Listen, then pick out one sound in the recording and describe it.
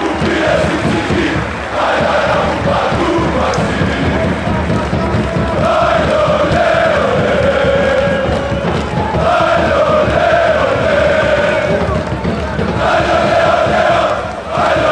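A large crowd of fans chants loudly in unison outdoors.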